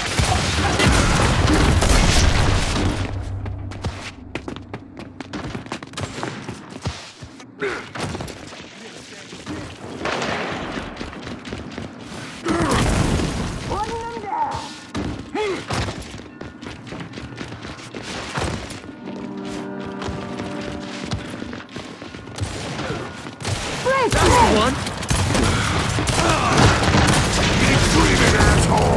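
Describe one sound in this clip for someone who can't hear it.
Gunfire bursts loudly and rapidly.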